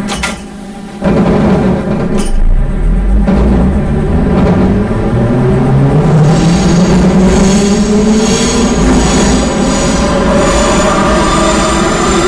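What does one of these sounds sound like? An electric train motor whines, rising steadily in pitch as the train speeds up.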